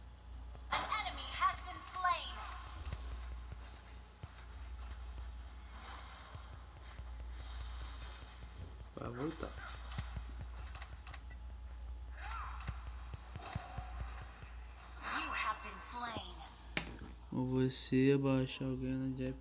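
Video game sword strikes and magic blasts clash in quick bursts.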